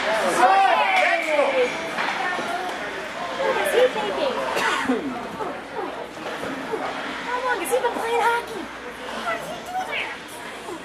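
Young players shout to each other in a large echoing arena.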